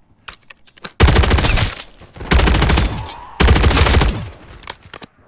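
A machine gun fires loud bursts.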